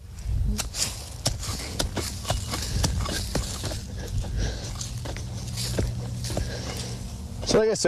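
A man digs in dry ground with a hand tool, scraping and thudding.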